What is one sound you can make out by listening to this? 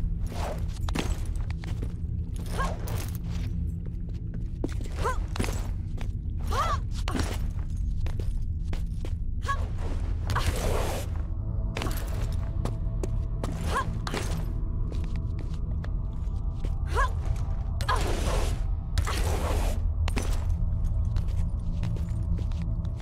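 Hands slap and grab onto stone ledges.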